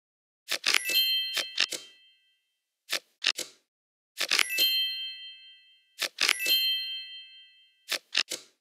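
A bright chime rings briefly and fades.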